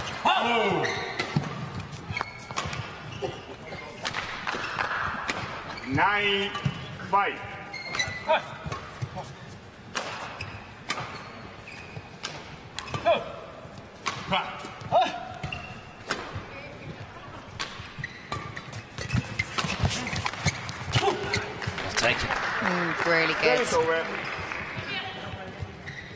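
Shoes squeak on a court floor.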